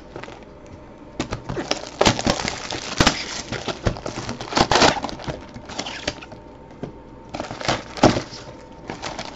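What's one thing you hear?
Cardboard scrapes and rustles as a box is handled and opened.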